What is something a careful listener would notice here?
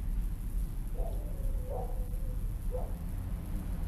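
Crows caw in the distance.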